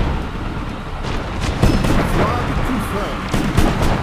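Game weapon shots fire in quick bursts.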